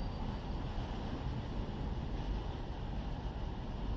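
Freight wagons rumble and clatter along rails.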